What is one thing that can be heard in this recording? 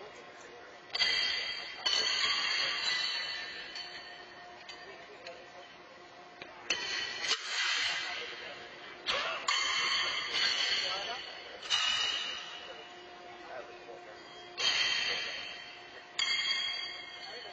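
Steel horseshoes clang against metal stakes, ringing out in a large echoing arena.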